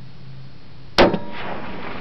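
A rifle fires a single loud, sharp shot close by.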